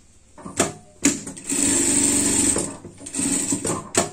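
An industrial sewing machine stitches through fabric in short bursts.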